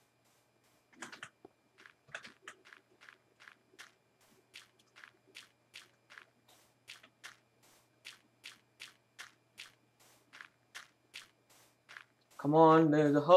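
Footsteps crunch steadily on sand and gravel.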